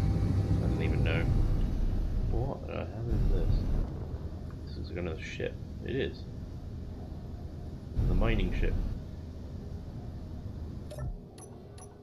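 A spaceship's engines rumble low and steady.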